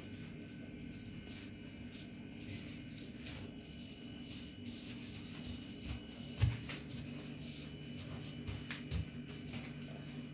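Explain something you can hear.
Dry pastry strands rustle softly under gloved hands.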